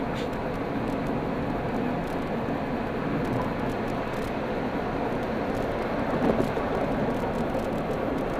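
A car's engine hums steadily with road noise from inside while driving.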